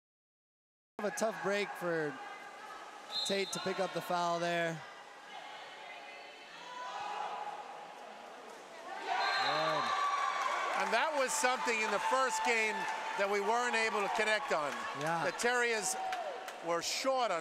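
A group of young women shout and cheer loudly nearby in an echoing hall.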